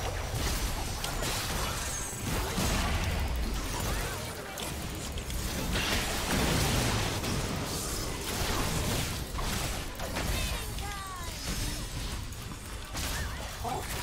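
Video game battle effects whoosh, zap and crash rapidly throughout.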